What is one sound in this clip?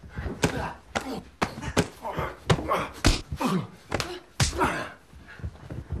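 A man grunts with effort.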